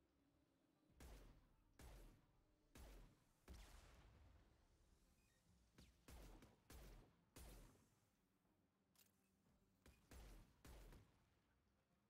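Heavy shotgun blasts boom one after another, echoing briefly.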